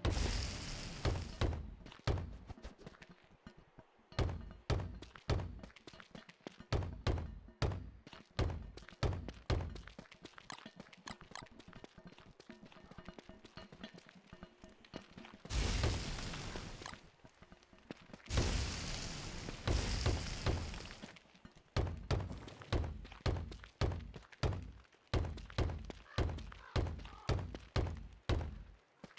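Soft thuds of digging into soil repeat at a steady pace.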